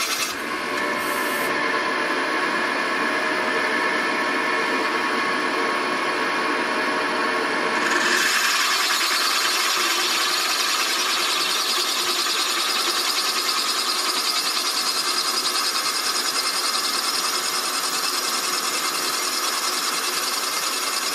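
A milling cutter whines steadily as it bores into a metal engine block.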